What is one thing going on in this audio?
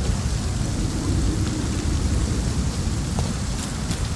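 Footsteps fall on stone paving.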